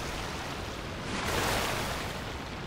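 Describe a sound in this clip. Water bursts up in a loud splash around a boat.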